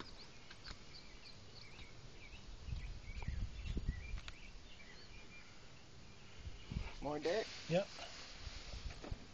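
Hands scrape and scoop loose soil close by.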